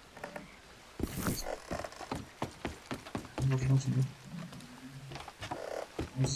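Footsteps thud quickly on wooden planks.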